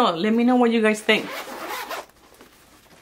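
A zipper is pulled open.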